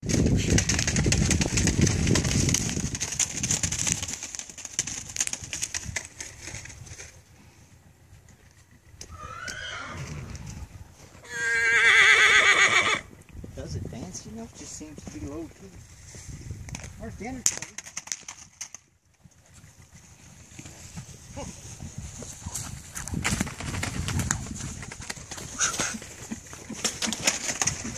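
A horse's hooves trot over snow.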